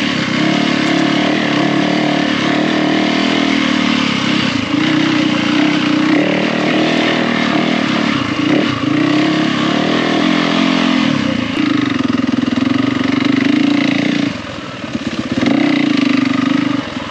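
A dirt bike engine revs and putters up close, rising and falling.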